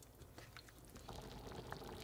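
Stew bubbles gently in a pot.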